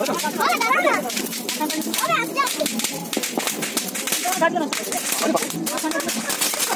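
A firework fountain hisses and crackles outdoors.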